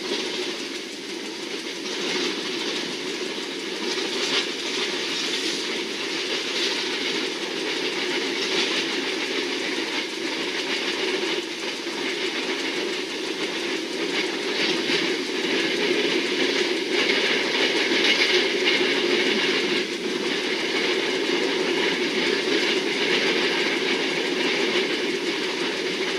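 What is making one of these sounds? Wheels clatter rhythmically over rail joints.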